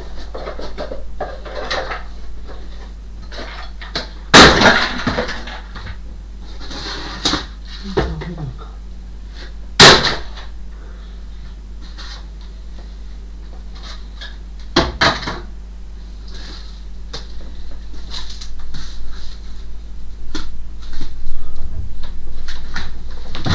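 Objects knock and clatter against wooden shelves.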